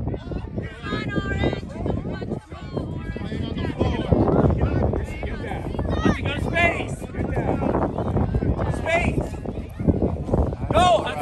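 Children shout and cheer nearby outdoors.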